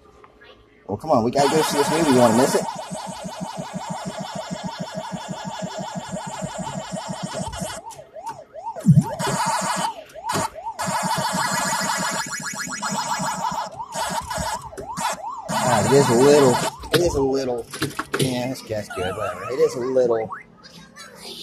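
An arcade game plays its electronic music and chirping sound effects.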